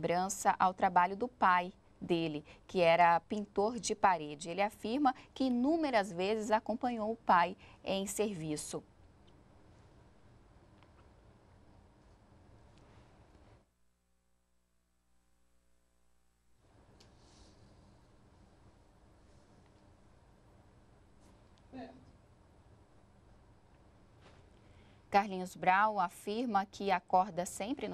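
A woman speaks clearly and steadily, close to a microphone.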